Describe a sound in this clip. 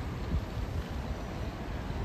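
Footsteps pass close by on pavement.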